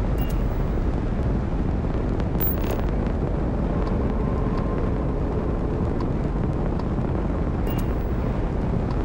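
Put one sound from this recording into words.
A spacecraft's engines rumble steadily with a deep roar.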